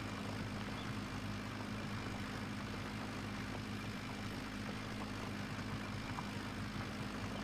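A plough scrapes and rumbles through soil.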